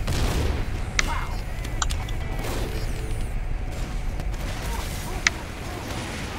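Menu selection clicks sound briefly.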